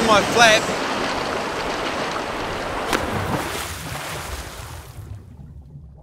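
Waves splash and churn on the open sea.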